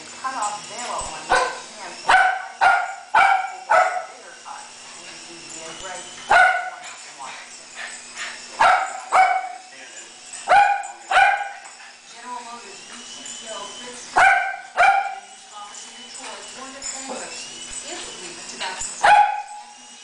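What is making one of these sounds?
Small dogs bark sharply and excitedly indoors.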